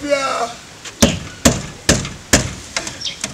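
Knuckles knock sharply on a metal gate several times.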